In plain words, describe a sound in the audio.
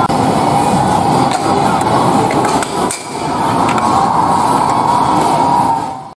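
An air hockey puck clacks against mallets and the table's sides.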